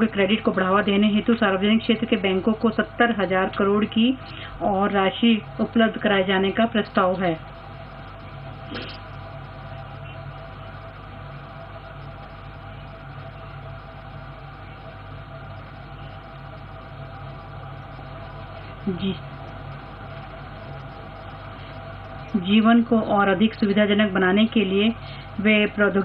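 A woman speaks steadily through a microphone.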